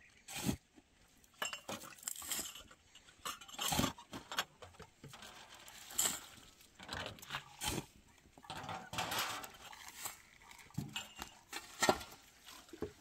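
A hoe chops into dry rocky soil.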